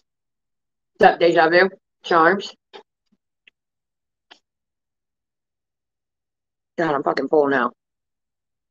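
A woman speaks in short bursts into a microphone, with animation.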